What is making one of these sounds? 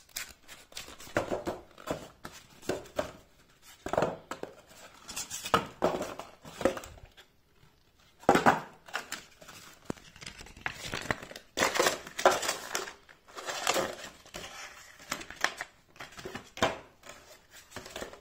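Cardboard scrapes and taps as a box is moved.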